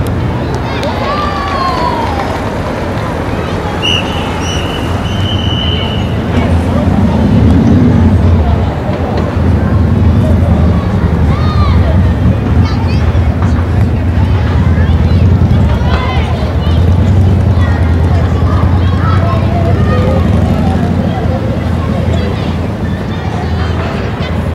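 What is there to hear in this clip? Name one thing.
Children shout and call out across an open playing field.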